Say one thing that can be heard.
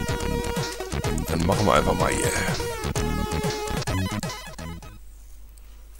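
Chiptune game music plays from a computer.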